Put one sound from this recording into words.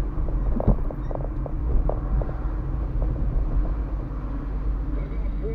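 Tyres roll over a rough street.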